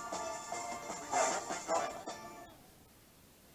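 A man sings into a microphone.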